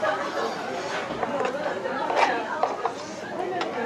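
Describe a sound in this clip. A metal spoon scrapes against a pan.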